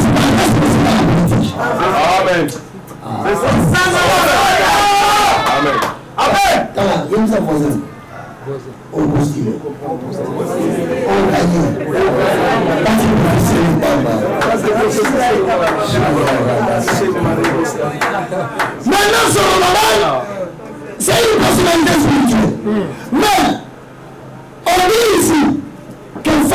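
A man speaks forcefully into a microphone, preaching with animation.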